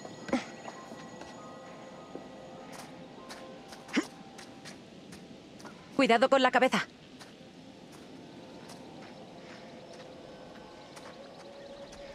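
Footsteps crunch slowly over dry ground and leaves.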